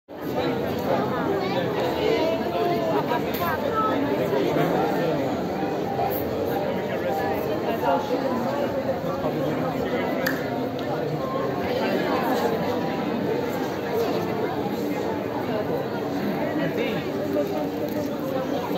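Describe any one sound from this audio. A crowd of adults and children chatters all around, close by, outdoors.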